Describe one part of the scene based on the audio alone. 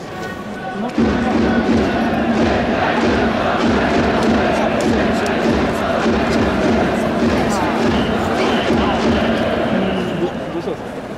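A large crowd cheers and roars in an echoing stadium.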